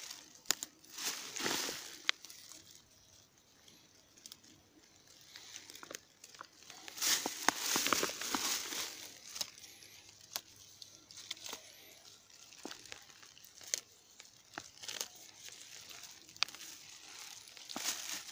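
A plastic bag crinkles close by.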